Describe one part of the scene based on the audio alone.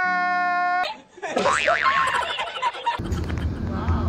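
An older man laughs heartily.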